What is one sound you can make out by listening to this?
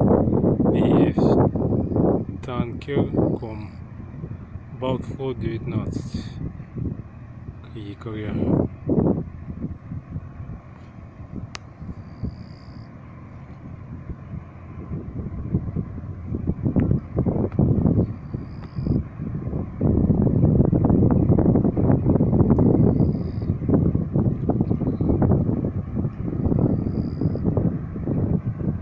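Wind gusts and rumbles outdoors by open water.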